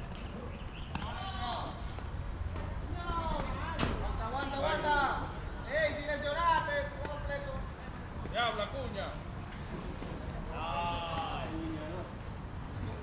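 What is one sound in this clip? Young men call out loudly across an open field.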